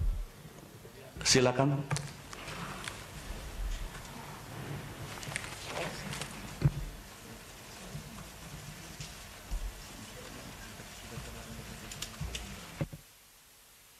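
Voices murmur in a large room.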